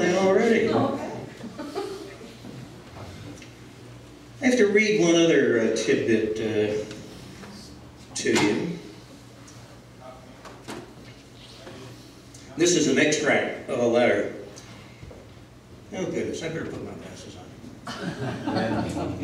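An elderly man speaks through a microphone and loudspeaker.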